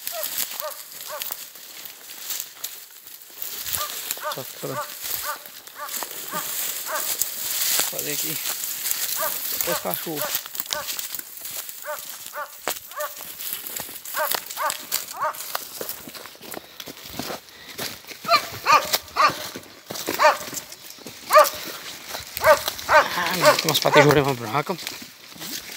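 Dry leaves and twigs crunch and rustle underfoot.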